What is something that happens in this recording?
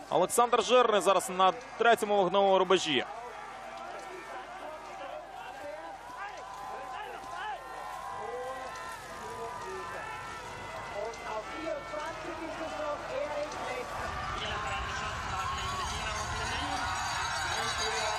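A crowd cheers in the distance.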